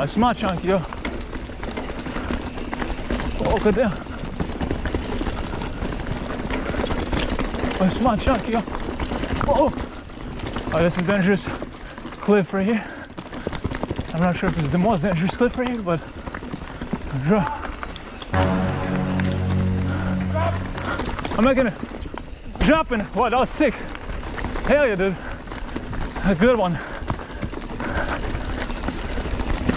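Bicycle tyres roll and crunch over a rocky dirt trail.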